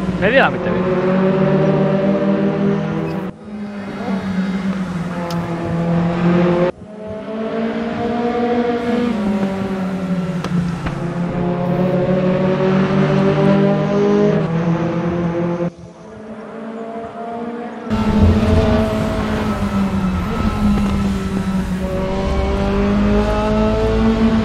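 Racing car engines roar at high revs, their pitch rising and falling as they shift gears and corner.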